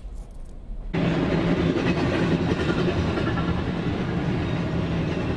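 A train roars loudly along the tracks close by.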